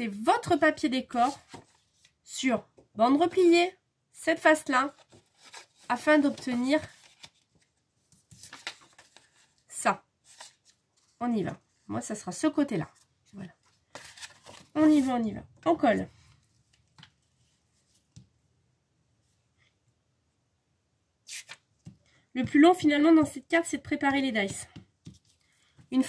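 A woman talks calmly and close by, in short bursts with pauses.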